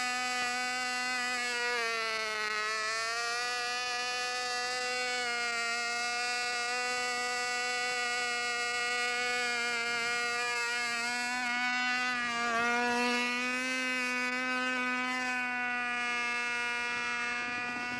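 A model airplane engine buzzes at full throttle.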